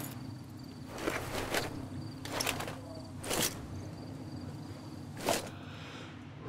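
A gun clicks and rattles as it is handled.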